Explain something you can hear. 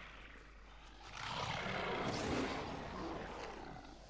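A creature roars loudly.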